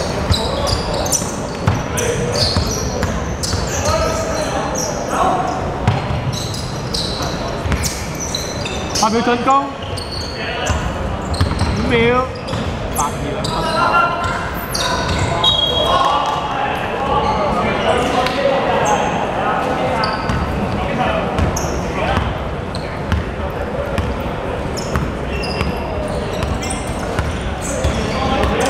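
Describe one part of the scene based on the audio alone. A basketball bounces with dull thuds.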